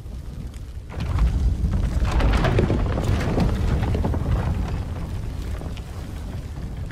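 A heavy stone door rumbles and grinds open.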